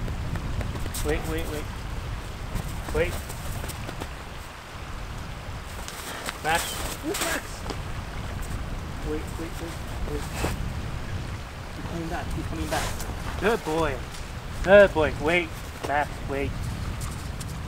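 A young man talks to a dog nearby in a cheerful, coaxing voice.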